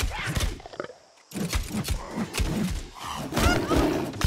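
Blows thud in a close fight.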